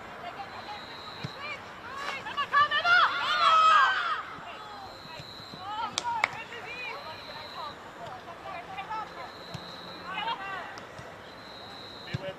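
Young women shout to each other across an open outdoor field.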